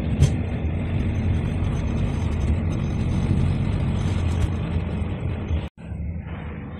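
A train rumbles along the tracks at speed.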